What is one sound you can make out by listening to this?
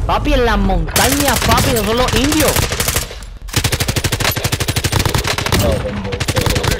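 Rapid automatic gunfire rattles.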